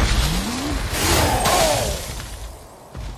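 A blast bursts with a deep rumble.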